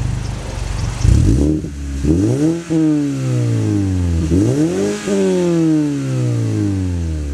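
A car engine revs up hard and drops back several times, its exhaust roaring.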